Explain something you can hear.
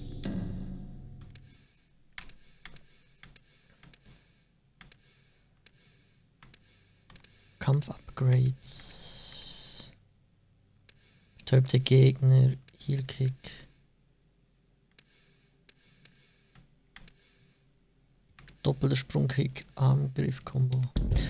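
Short soft interface clicks tick again and again as a menu is browsed.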